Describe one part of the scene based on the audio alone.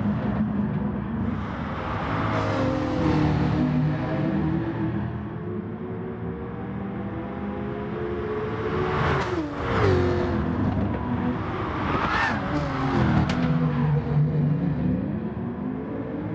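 Racing car engines roar and whine as they shift gears.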